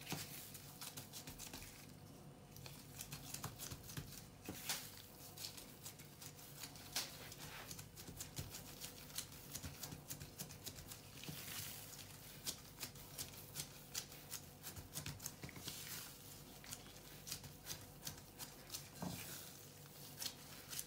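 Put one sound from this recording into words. Gloved hands knead and press soft dough with soft thumps and rustles.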